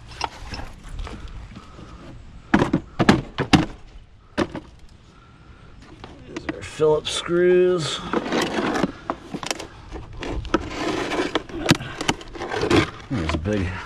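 A plastic object scrapes and clatters along concrete.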